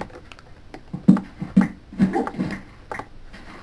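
A pickaxe chips rapidly at a stone block.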